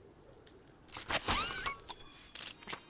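A short cheerful jingle plays as a prize is collected.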